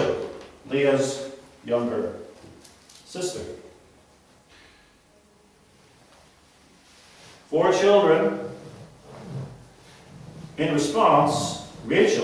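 A middle-aged man speaks calmly and clearly, close by, with pauses between phrases.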